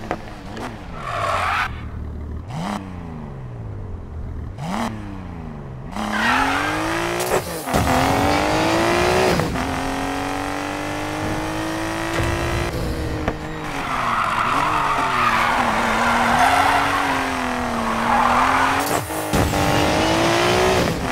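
A car engine revs up and down through the gears.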